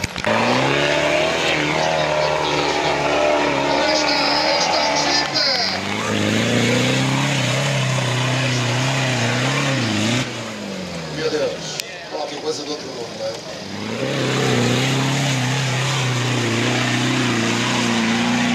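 An off-road vehicle's engine roars and revs hard as it climbs a steep slope.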